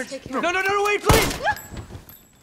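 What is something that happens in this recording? A single gunshot rings out.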